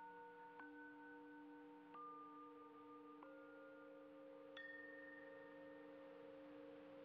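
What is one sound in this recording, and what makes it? Steady electronic tones drone, shifting in pitch every second or so.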